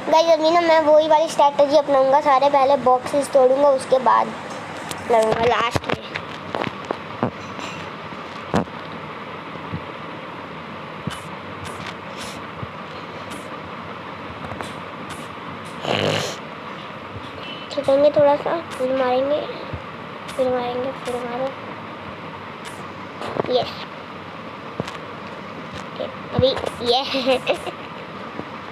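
A boy talks with animation, close to a microphone.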